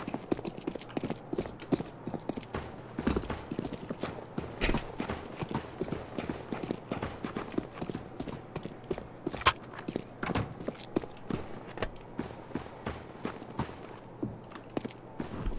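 Footsteps crunch quickly on snow.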